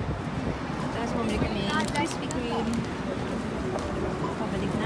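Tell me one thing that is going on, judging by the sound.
A paper bag crinkles and rustles in a hand.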